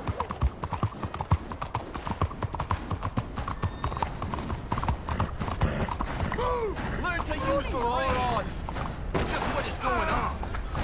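Horse hooves clop quickly on a hard stone surface.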